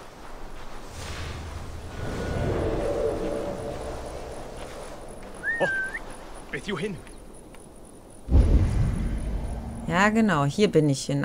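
Tall dry grass rustles as someone creeps through it.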